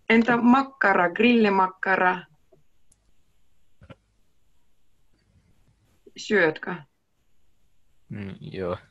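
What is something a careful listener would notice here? A young woman speaks calmly and clearly through a microphone on an online call.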